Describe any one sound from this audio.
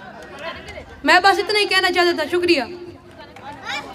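A young boy speaks loudly into a microphone.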